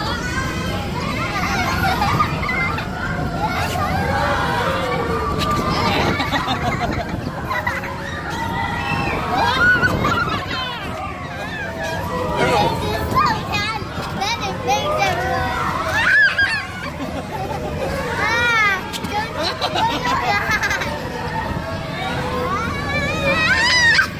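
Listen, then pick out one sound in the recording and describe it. A young girl laughs and squeals with delight close by.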